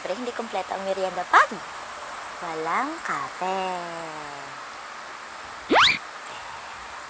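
A young woman talks cheerfully and with animation close to a microphone.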